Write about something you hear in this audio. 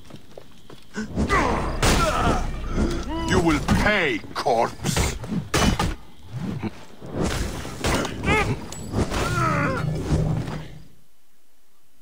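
Swords clash and strike in a close fight.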